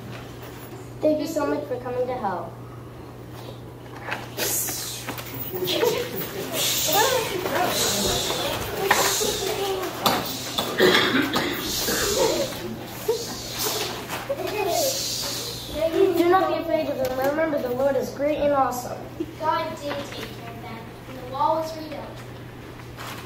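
Young girls talk and laugh with excitement.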